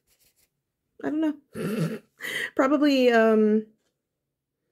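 A young woman speaks close to a microphone with animation, drawing out her last word.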